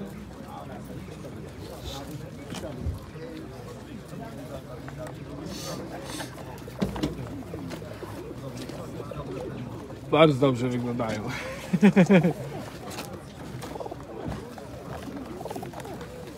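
Pigeons coo softly nearby.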